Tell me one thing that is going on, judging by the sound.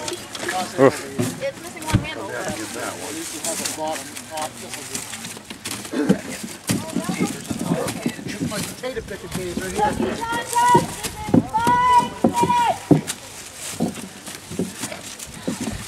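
Corn husks rustle as hands sort through them.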